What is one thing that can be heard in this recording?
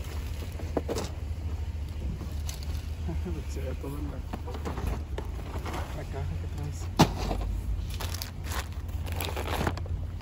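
Groceries thump and clatter as they are lifted out of a metal shopping cart.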